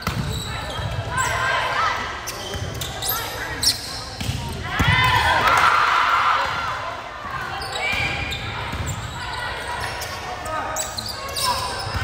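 Sneakers squeak sharply on a gym floor.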